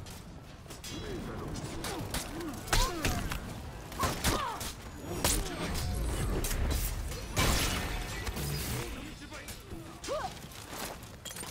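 Swords clash and clang in a battle.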